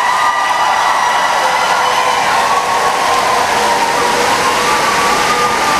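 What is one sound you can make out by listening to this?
A crowd of children claps along.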